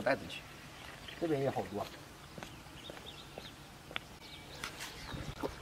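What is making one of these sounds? Footsteps scuff on a muddy path.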